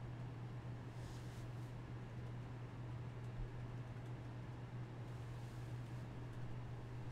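Fingers rustle and rub softly close by.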